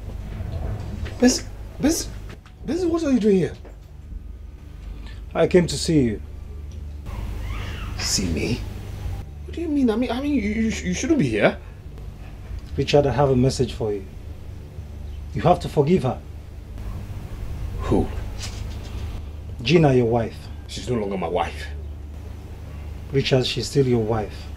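A second man answers calmly and close by.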